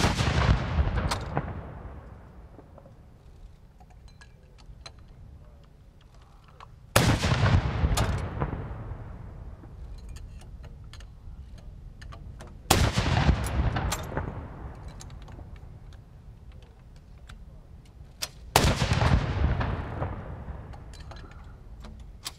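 Cannons fire loud booming blasts outdoors that roll and echo away.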